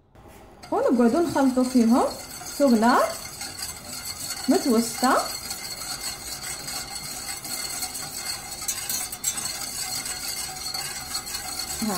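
A whisk stirs liquid in a metal pot, clinking softly against its sides.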